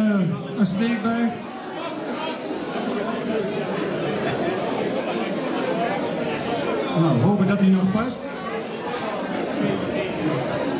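A man speaks into a microphone over a loudspeaker.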